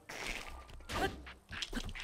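A sword whooshes through the air.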